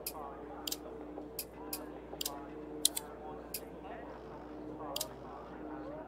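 Short electronic menu clicks tick several times.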